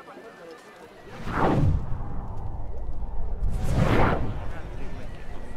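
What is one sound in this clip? A deep, rushing whoosh swells up loudly and then fades.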